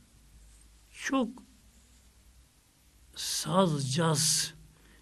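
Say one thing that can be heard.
An elderly man speaks slowly and earnestly into a microphone, in short phrases with pauses.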